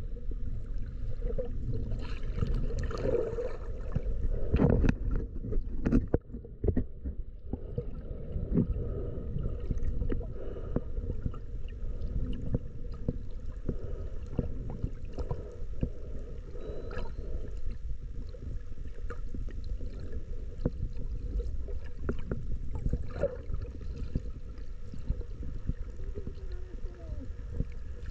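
Water gurgles and rumbles underwater, with small crackling pops and bubbles.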